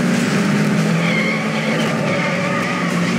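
Tyres screech as a car slides through a turn.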